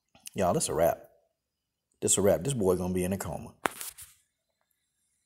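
A man speaks in short phrases, close to the microphone.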